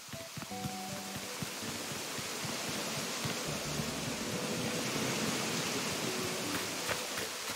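Footsteps patter quickly on stone and grass.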